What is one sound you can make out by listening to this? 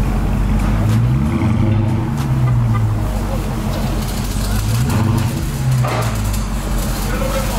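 A car engine revs up sharply and falls back, twice.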